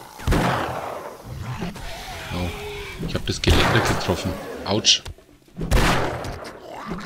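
A shotgun fires loud blasts that echo briefly.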